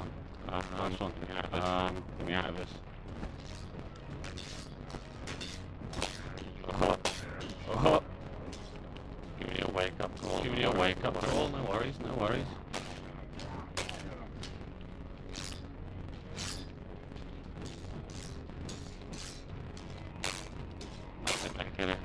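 Swords clash and clang repeatedly.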